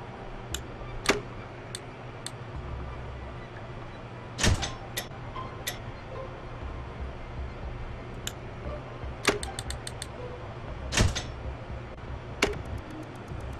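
Short game clicks and blips sound now and then.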